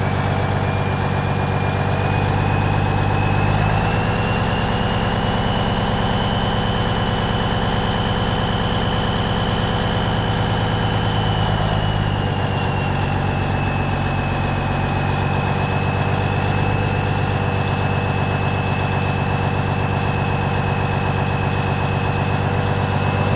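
A high whine from the truck's drivetrain rises and falls with speed.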